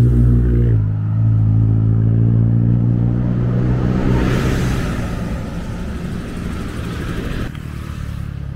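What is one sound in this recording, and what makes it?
A bus passes close by with a deep engine rumble.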